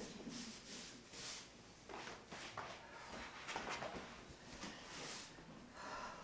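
A broom sweeps across the floor in quick strokes.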